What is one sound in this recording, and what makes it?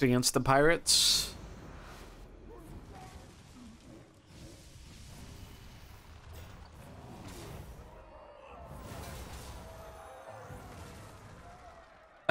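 Magical blasts and crashing impacts rumble in a game battle.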